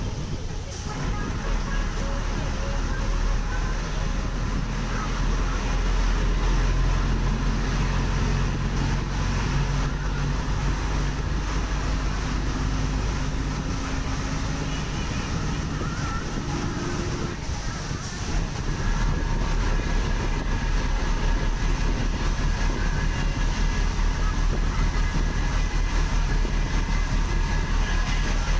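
A bus engine rumbles steadily from inside, with a rhythmic throb.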